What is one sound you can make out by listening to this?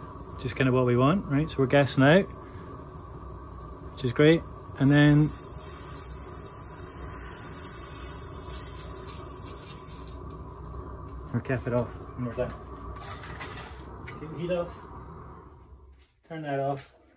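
Steam hisses loudly from a leaking pipe.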